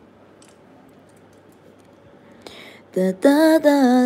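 Small stone pendants clink softly as a hand picks one up.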